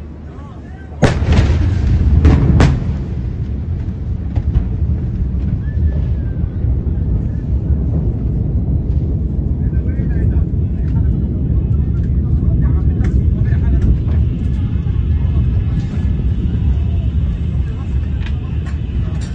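A massive explosion booms with a sudden, deafening blast and rolls on as a deep rumble.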